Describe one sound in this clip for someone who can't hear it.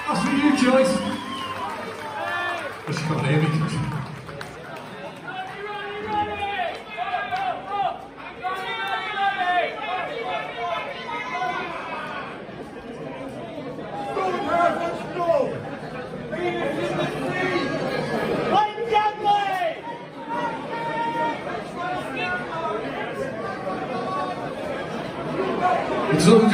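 A man sings loudly into a microphone over an amplified band.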